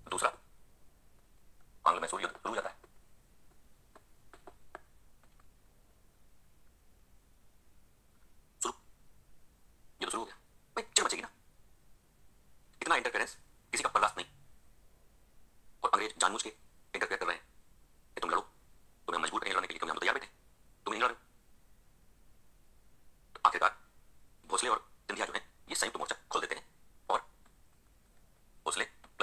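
A man speaks with animation in short bursts, heard through a small loudspeaker.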